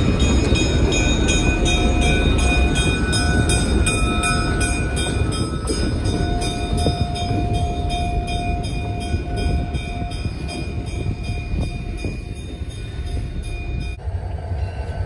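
Passenger cars rattle and clatter past on the rails close by.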